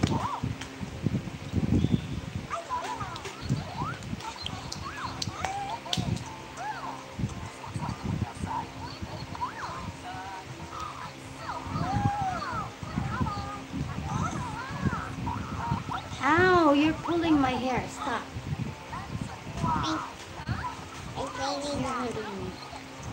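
A small girl chatters in a high voice close by.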